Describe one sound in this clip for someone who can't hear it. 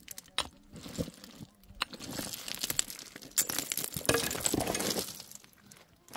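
A pickaxe strikes rocky soil with dull thuds.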